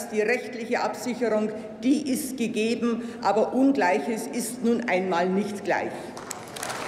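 An elderly woman speaks calmly into a microphone in a large hall.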